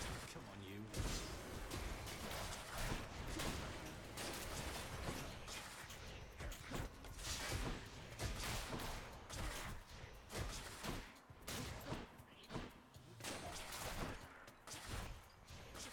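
Game combat sounds of slashes and hits ring out quickly.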